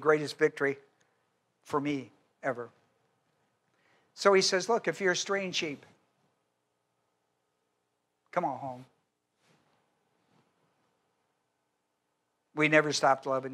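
An elderly man speaks with animation through a microphone, with pauses.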